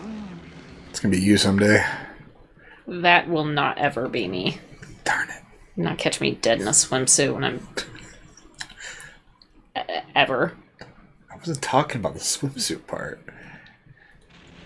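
A young woman talks casually close to a microphone.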